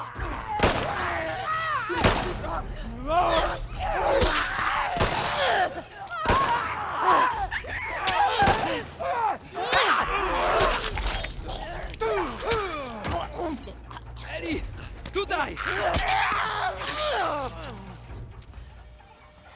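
Heavy blows thud and crack in a close struggle.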